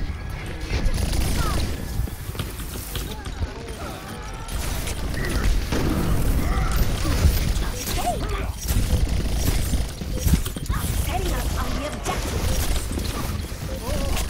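A game weapon fires repeated whooshing shots.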